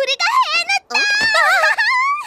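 A young girl squeals loudly with joy.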